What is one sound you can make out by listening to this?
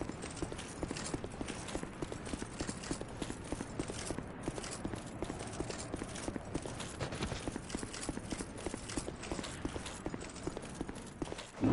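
Armoured footsteps crunch quickly through snow on stone.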